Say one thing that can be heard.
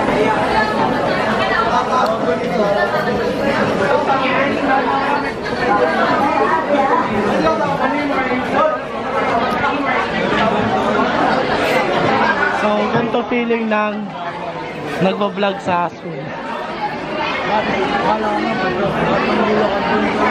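Several teenagers talk over one another nearby.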